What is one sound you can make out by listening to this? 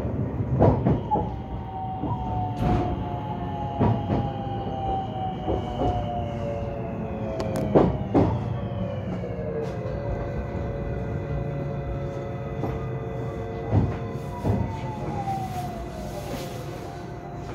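A train's electric motor whines, its pitch slowly falling.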